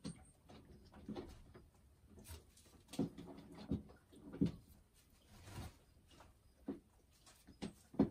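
A hen clucks softly and croons close by.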